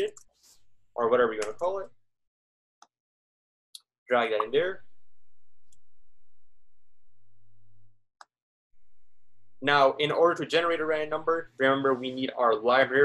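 A young man speaks calmly over an online call, in short bursts with pauses.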